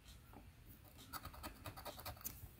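A plastic chip scrapes rapidly across a scratch card.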